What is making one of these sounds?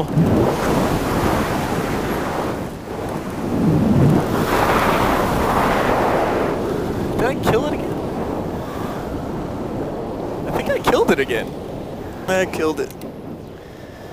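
Wind rushes and buffets loudly past a paraglider in flight.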